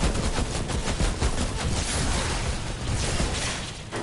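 A rocket launcher fires with a loud whoosh and blast.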